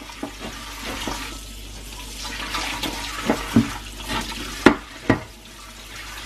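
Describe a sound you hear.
A sponge scrubs a wet baking tray.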